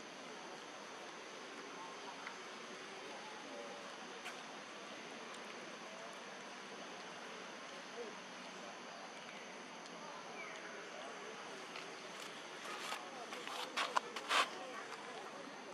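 A baby monkey chews food with soft smacking sounds.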